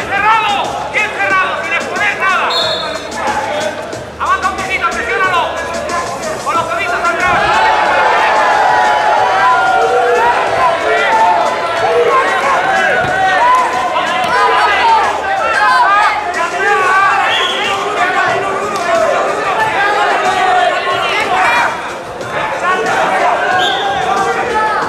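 A crowd of men and women shouts and cheers in a large echoing hall.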